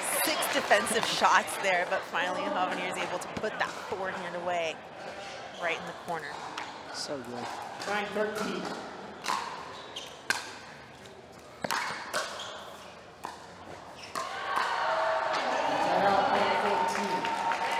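Paddles hit a plastic ball back and forth with sharp pops.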